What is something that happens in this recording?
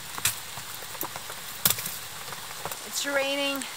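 A fire crackles and pops.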